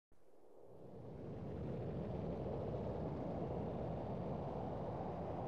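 Wind blows steadily across dusty open ground.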